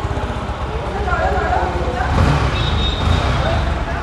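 Men talk in the background.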